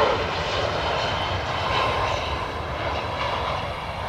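Tyres thump onto a runway as a jet touches down.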